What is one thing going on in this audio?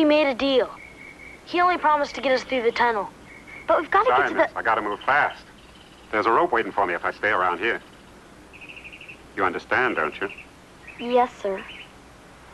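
A boy speaks calmly, close by.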